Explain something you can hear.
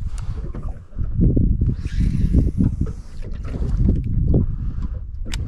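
A fishing reel whirs as line runs out.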